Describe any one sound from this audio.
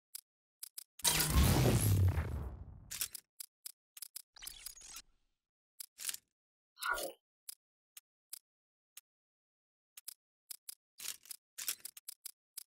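Short electronic menu clicks tick again and again.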